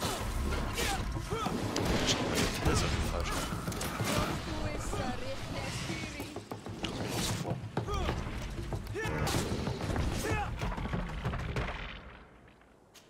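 Heavy blows and clashes of a fierce fight ring out.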